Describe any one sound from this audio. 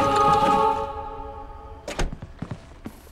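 A heavy lid slams shut.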